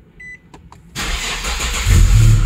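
A car engine starts and idles loudly.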